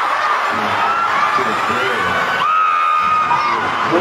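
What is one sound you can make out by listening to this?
A crowd cheers and screams in a large echoing hall.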